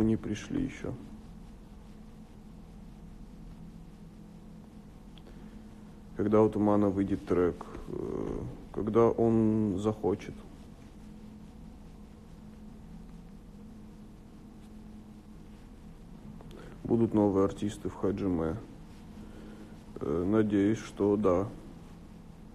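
A young man speaks calmly and close up, in short bursts, as if through a phone's microphone.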